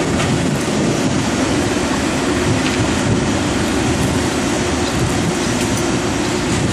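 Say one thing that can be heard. An excavator engine rumbles steadily nearby.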